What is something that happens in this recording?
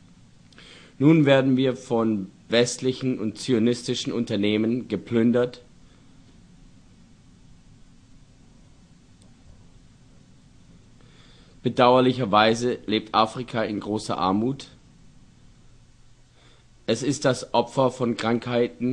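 An elderly man speaks slowly and calmly, with long pauses.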